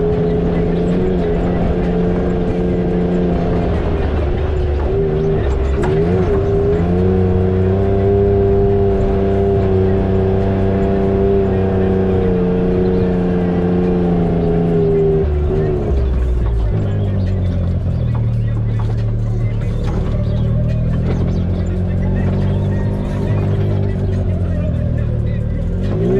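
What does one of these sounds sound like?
An off-road vehicle's engine drones loudly, rising and falling in pitch.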